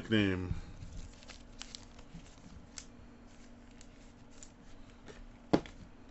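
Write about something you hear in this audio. A plastic card holder taps and clicks as it is handled.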